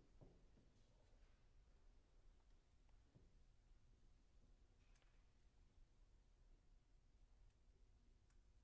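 A piano plays soft, sparse notes in a large hall.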